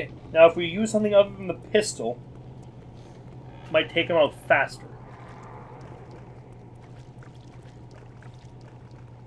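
Footsteps splash quickly through shallow water.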